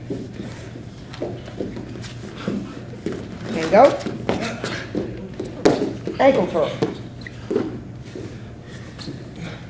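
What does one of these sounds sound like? A man talks calmly, explaining, in an echoing room.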